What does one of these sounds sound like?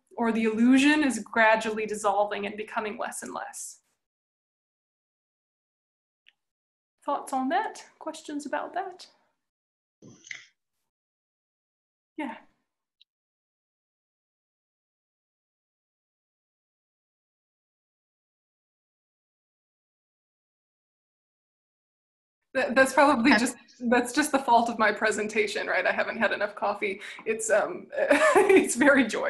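A young woman speaks with animation over an online call.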